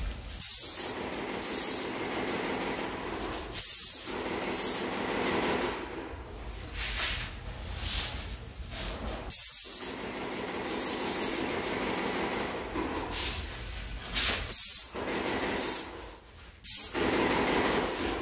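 An airless paint sprayer hisses in short, loud bursts.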